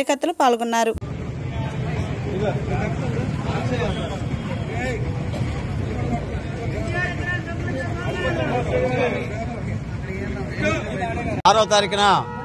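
A crowd of men chants and murmurs outdoors.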